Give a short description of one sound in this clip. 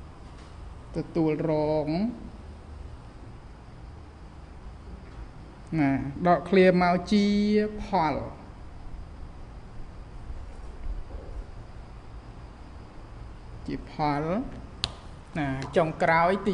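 A man speaks calmly in a drawn-out, sing-song voice, nearby.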